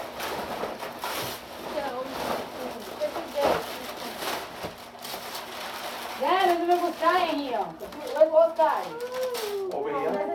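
Wrapping paper rustles and tears as a gift is opened.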